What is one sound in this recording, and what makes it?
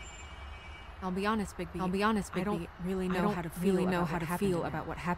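A young woman speaks quietly and hesitantly.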